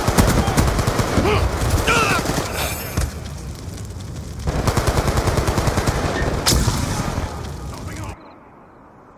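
Rapid gunfire rattles loudly in bursts.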